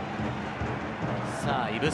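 A stadium crowd roars louder.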